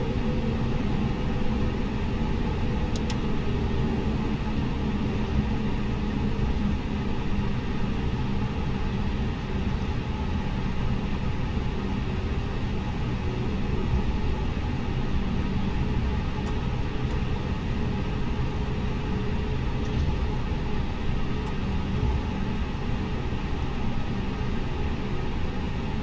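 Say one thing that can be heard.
Jet engines hum steadily at a low idle as an airliner taxis.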